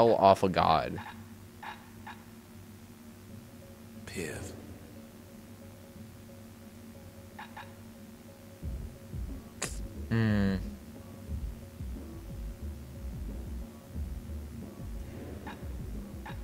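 Short game menu chimes sound as the selection changes.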